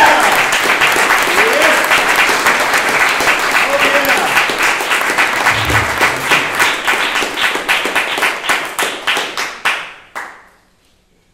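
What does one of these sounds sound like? An audience claps in an echoing hall, and the applause thins out and stops.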